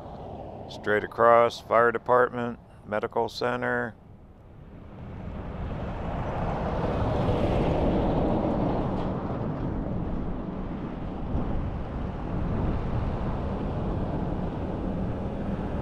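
Cars drive past on a road with a soft tyre hiss.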